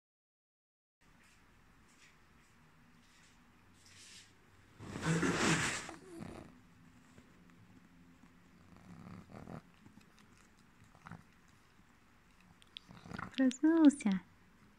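A dog licks and smacks its lips.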